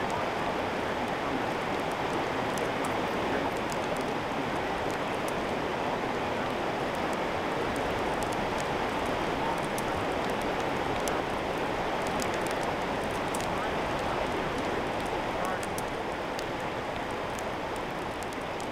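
Burning wood crackles and pops sharply.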